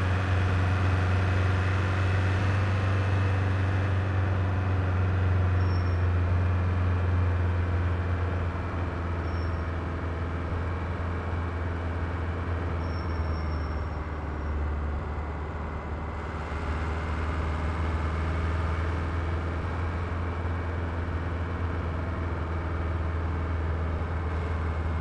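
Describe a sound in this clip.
A car engine hums steadily, easing off and then picking up again.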